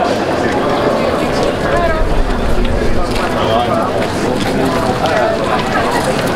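A crowd of people chatter nearby outdoors.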